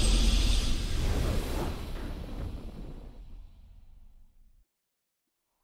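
A triumphant game fanfare booms out and slowly fades away.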